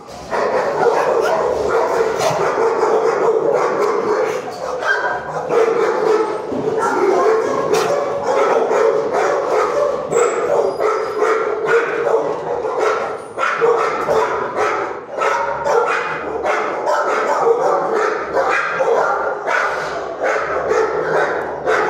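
Dogs bark repeatedly in a loud, echoing room.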